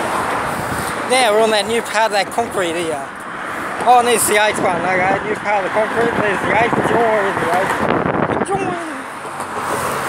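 A middle-aged man talks casually, close to the microphone.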